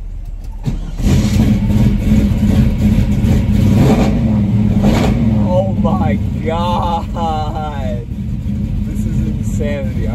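A car engine rumbles steadily inside the car.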